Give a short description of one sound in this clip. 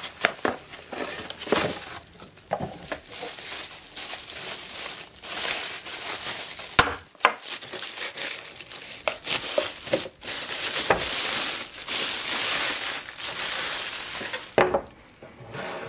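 Plastic bubble wrap crinkles and rustles as hands unwrap it.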